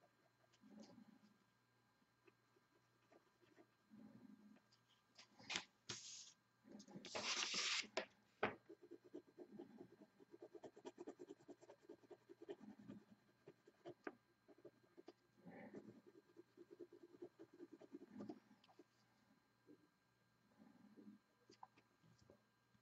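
A pencil scratches softly on paper in short strokes.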